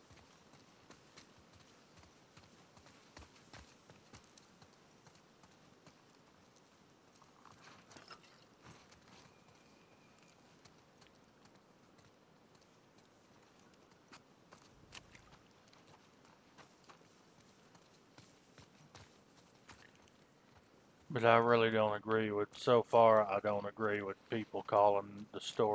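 Footsteps rustle through tall grass and crunch on debris.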